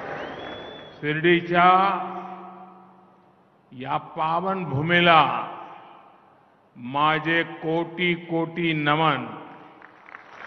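An elderly man gives a speech with force through a microphone and loudspeakers.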